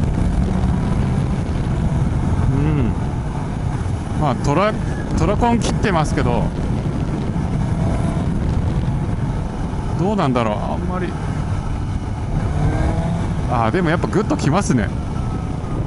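A motorcycle engine hums and rumbles steadily while riding.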